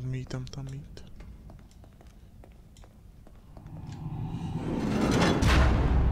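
Footsteps tread on a hard stone floor.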